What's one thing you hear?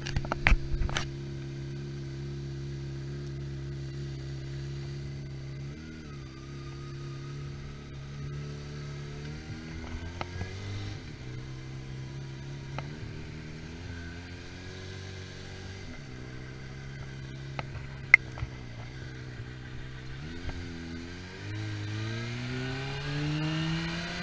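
A motorcycle engine idles, then revs and rises in pitch as the bike rides off and speeds up.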